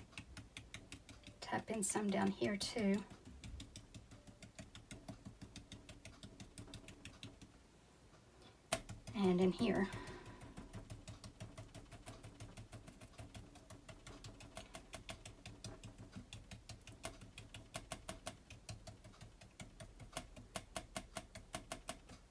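A brush dabs and taps rapidly on a canvas.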